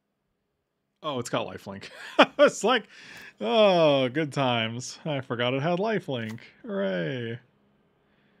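A middle-aged man talks with animation into a close microphone.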